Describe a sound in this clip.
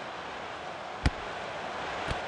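A football is struck hard with a single thud.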